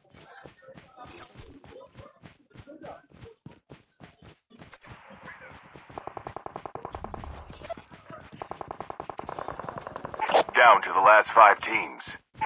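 Footsteps run over dirt and grass.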